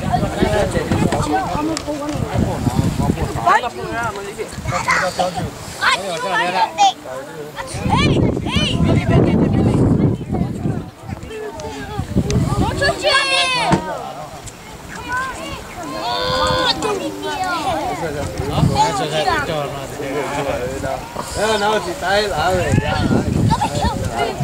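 Children call out in high voices nearby.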